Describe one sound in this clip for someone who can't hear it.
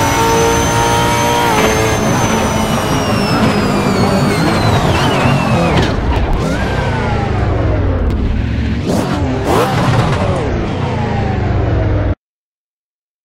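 A race car engine roars and shifts through gears at high revs.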